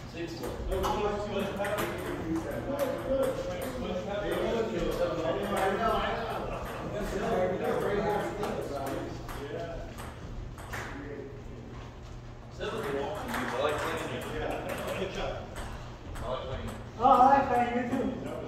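Men talk casually nearby in an echoing room.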